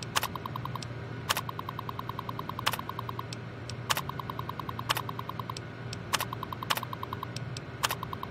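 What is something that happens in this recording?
A computer terminal beeps rapidly.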